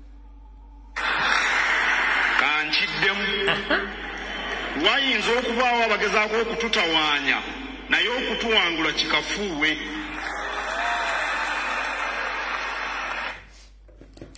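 A man speaks forcefully into a microphone.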